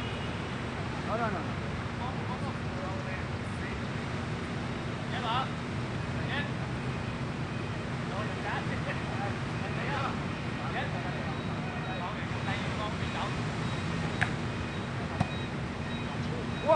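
Men shout to each other while playing ball outdoors.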